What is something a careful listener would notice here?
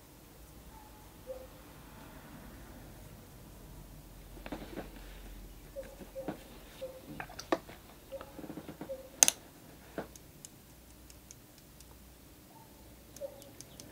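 A paintbrush brushes and dabs softly on paper.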